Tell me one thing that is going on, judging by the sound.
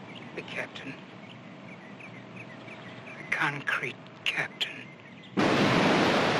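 An elderly man speaks tensely, close by.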